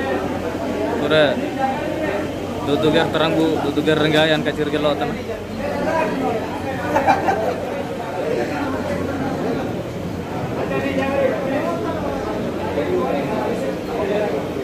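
A crowd of people chatters indoors.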